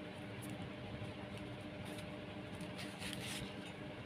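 A hand sets a sheet of card down with a soft tap.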